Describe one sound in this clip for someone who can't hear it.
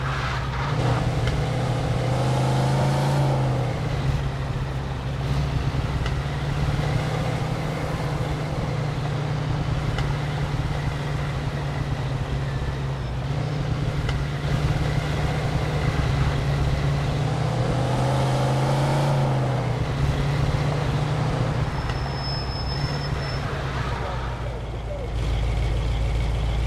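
Tyres hiss over a snowy road.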